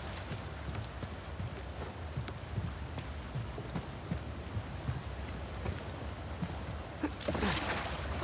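Footsteps tread over stone and grass.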